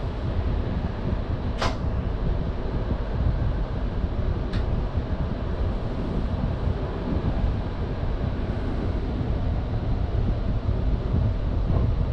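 Train wheels clatter over rail joints as the train pulls away.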